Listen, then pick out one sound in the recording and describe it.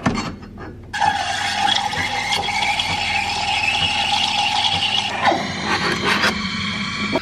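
A coffee machine's steam wand hisses and gurgles while frothing milk.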